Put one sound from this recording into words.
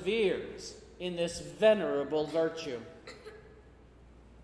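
A middle-aged man speaks slowly and solemnly through a microphone in a large, echoing room.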